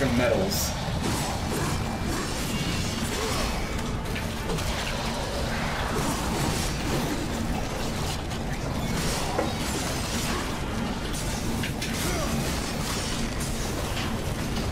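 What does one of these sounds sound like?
Sword slashes, impacts and blasts from a video game clash rapidly.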